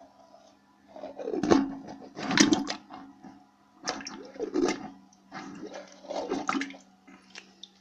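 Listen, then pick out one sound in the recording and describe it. A plunger squelches and gurgles in a toilet bowl with water sloshing.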